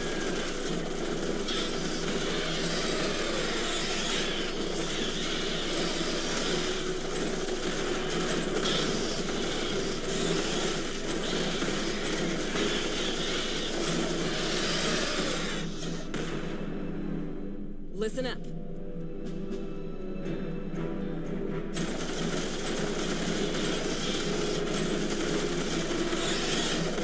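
Gunfire rattles in rapid bursts amid a battle.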